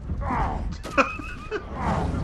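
A blast booms.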